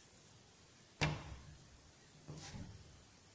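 A ball of dough is set down on a baking tray with a soft thud.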